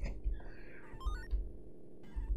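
A video game plays quick rising electronic beeps.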